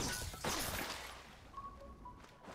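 Water splashes and sloshes loudly.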